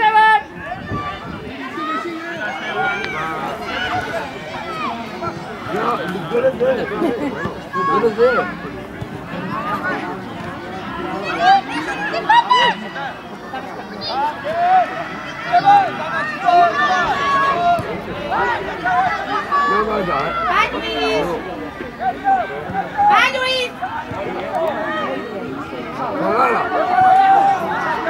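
Children shout and call out across an outdoor football pitch.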